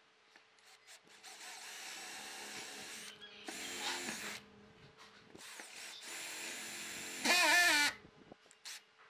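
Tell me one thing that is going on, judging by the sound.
A cordless drill bores into wood.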